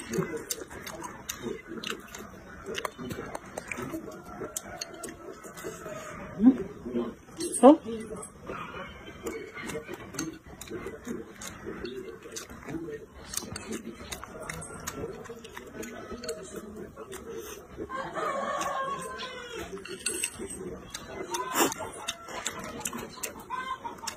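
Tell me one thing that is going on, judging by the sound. A young woman chews and slurps food loudly close by.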